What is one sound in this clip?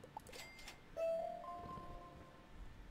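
A short bright chime rings softly.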